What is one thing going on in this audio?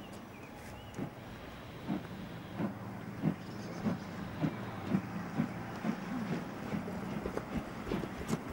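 A steam locomotive chuffs in rhythmic puffs, getting quicker.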